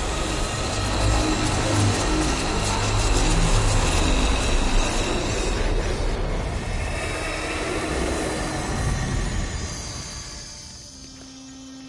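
A deep magical energy roars and crackles loudly, then fades.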